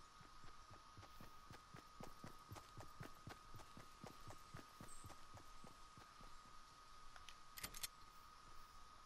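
Footsteps shuffle softly through grass.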